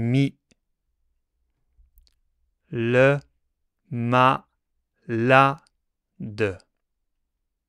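A man speaks slowly and clearly into a microphone, sounding out short syllables one at a time.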